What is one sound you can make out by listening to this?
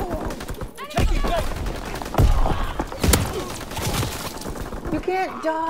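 Rifle shots crack loudly at close range.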